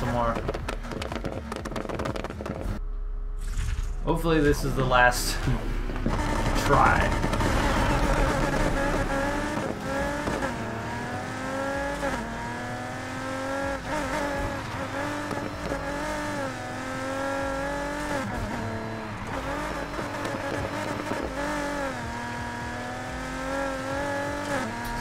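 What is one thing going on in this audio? A car engine roars and revs up and down as it races.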